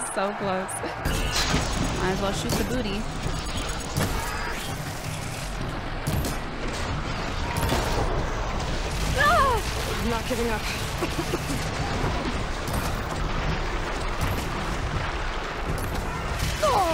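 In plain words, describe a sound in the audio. Explosions and bowstring twangs sound from a video game battle.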